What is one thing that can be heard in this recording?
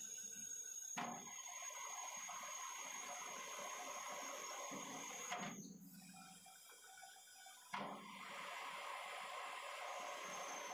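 A metal lathe spins with a steady whirring hum.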